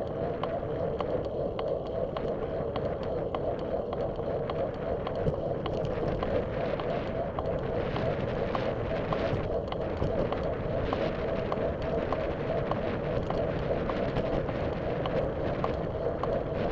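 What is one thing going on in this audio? Wind rushes steadily and buffets loudly outdoors.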